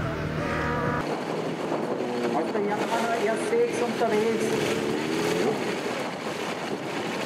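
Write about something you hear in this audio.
A motorcycle engine revs up close.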